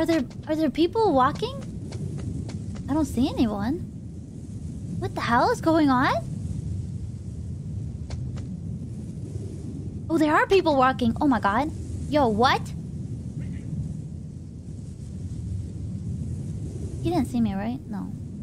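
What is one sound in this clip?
A young woman talks animatedly and close into a microphone.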